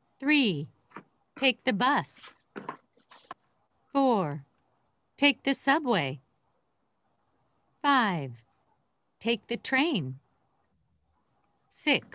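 A woman speaks slowly and clearly in short phrases over an online call, with pauses between them.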